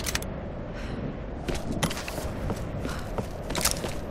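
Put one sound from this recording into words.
Footsteps run over gravel.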